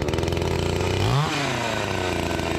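A chainsaw engine briefly revs up.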